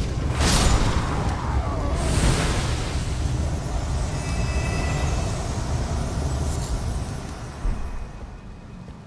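A loud magical burst whooshes and crackles with a deep rumble.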